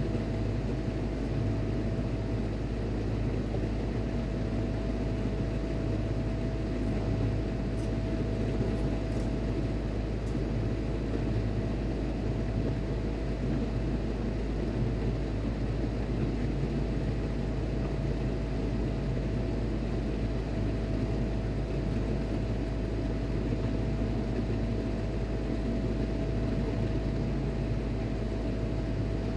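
A machine hums steadily close by.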